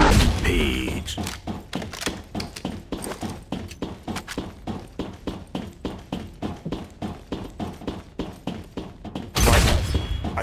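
Quick footsteps clang on a metal floor.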